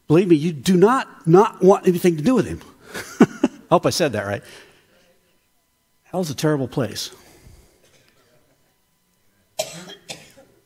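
An older man speaks with animation through a microphone in a large echoing hall.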